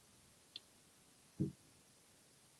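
A soft toy thumps as it drops onto a counter.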